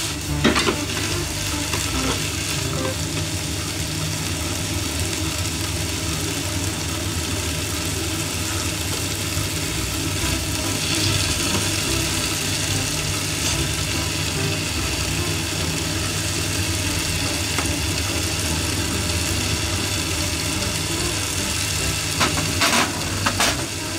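Chopsticks tap and scrape against a frying pan.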